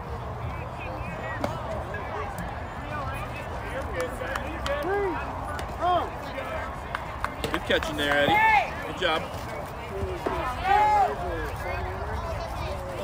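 Young girls cheer and shout outdoors.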